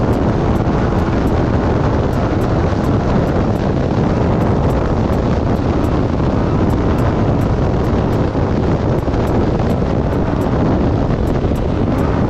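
Tyres rumble and crunch over a sandy dirt track.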